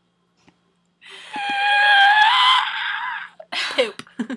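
A young woman squeals excitedly close to a microphone.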